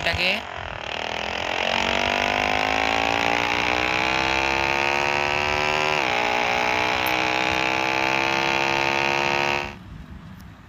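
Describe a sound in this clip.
A motorcycle engine revs steadily higher, drops briefly as it shifts gear, then climbs again.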